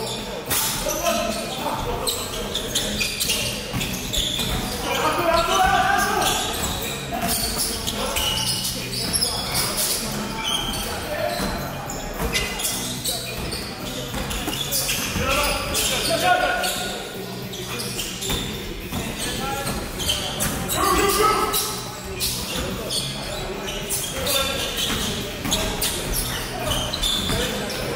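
Men shout and call out to each other across the hall.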